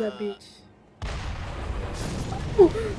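An explosion booms and roars.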